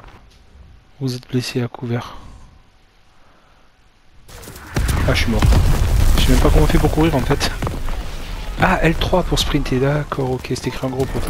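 A man talks with animation close to a headset microphone.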